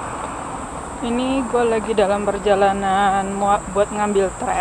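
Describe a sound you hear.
A young woman speaks close by, in a rising, drawn-out voice.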